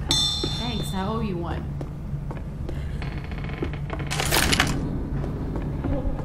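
Footsteps thud on wooden floorboards.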